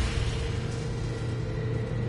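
A rifle fires a burst of gunshots.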